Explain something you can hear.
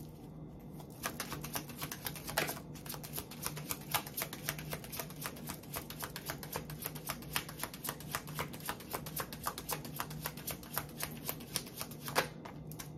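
Fingers tap and riffle a deck of cards with crisp, rapid clicks close up.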